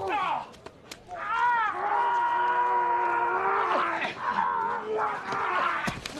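A man groans and grunts with strain close by.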